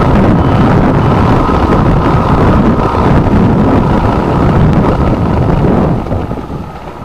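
Strong wind roars and buffets outdoors.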